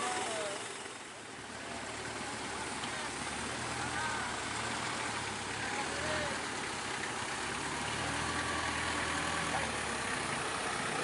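A vehicle engine hums nearby.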